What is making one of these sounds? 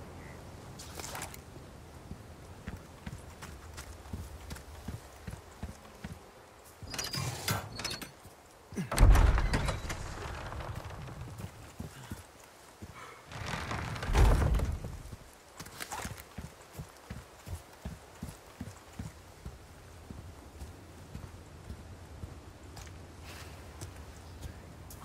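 Footsteps crunch steadily over gravel and dirt.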